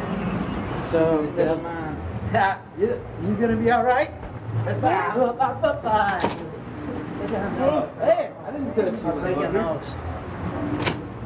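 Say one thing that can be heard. Men talk loudly and excitedly, close by.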